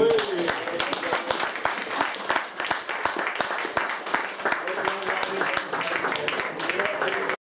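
Ukuleles strum in a quick rhythm.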